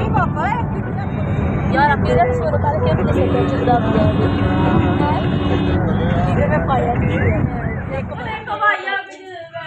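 A car engine hums and tyres rumble on the road from inside the car.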